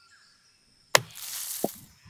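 A golf club strikes a ball with a sharp smack.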